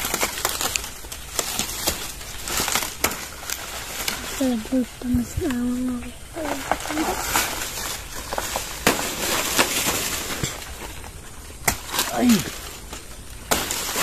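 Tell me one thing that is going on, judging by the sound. Dry leaves rustle and crackle close by.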